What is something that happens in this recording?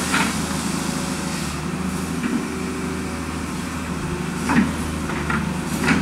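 Water churns and splashes around an excavator bucket.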